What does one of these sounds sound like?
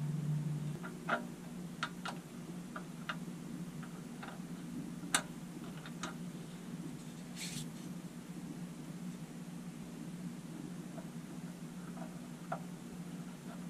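Small plastic parts click and tap softly.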